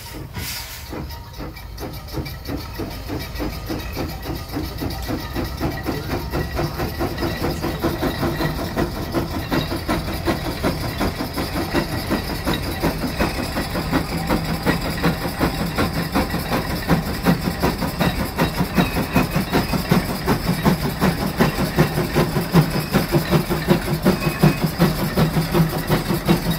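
A steam traction engine chuffs rapidly and grows louder as it approaches.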